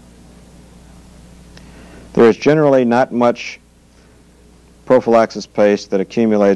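Small metal parts click and scrape together.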